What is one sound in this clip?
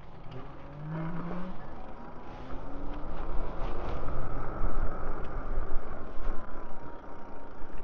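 An electric bike motor whirs and rises in pitch as the bike rolls off.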